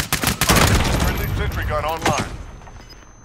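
An explosion roars and rumbles close by.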